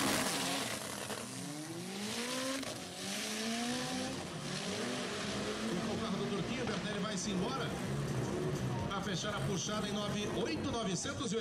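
A race car engine roars and climbs through the gears as the car speeds away.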